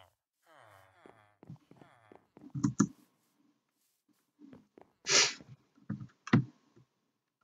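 Footsteps knock on wooden planks.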